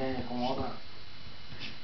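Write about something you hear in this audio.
A man speaks loudly and briefly nearby.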